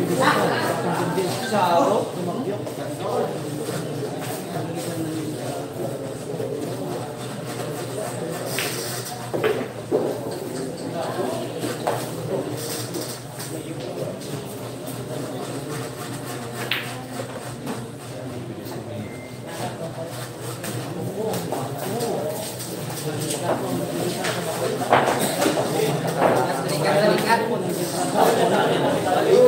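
A crowd of young men chatters nearby.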